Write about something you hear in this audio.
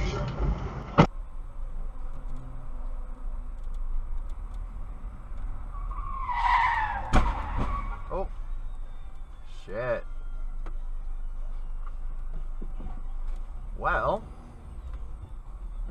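A car engine rumbles low and steady, heard from inside the car.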